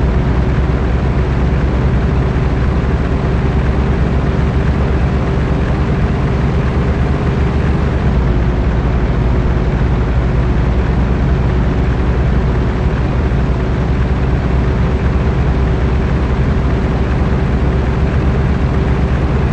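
Tyres roll with a steady hum on the road.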